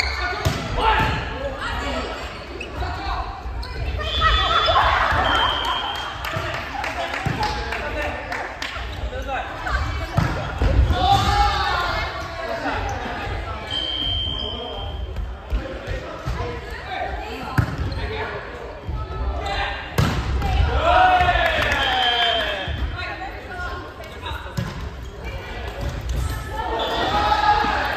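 Young women and men call out and chatter in a large echoing hall.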